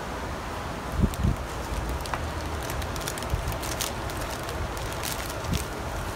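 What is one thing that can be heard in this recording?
A plastic bag crinkles as clothing is slid into it.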